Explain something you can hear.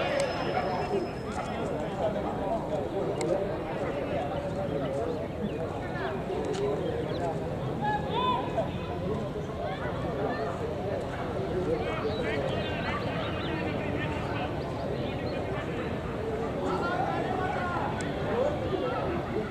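Young men talk and call out to each other at a distance outdoors.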